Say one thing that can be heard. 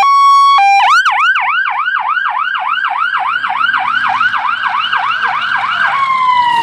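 A police siren blares loudly nearby, then yelps rapidly up and down.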